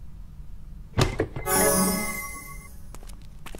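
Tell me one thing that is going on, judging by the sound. A bright magical chime rings out and fades.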